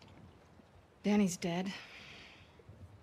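A young woman speaks briefly and with feeling.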